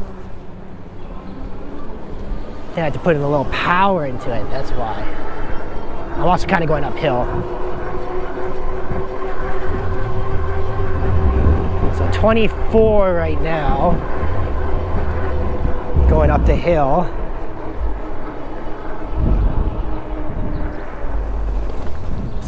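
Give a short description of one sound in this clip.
Bike tyres roll steadily on asphalt.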